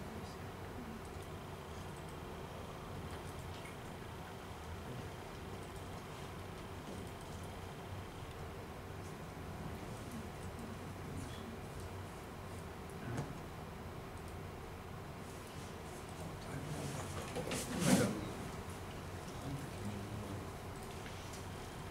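A man speaks calmly at a distance.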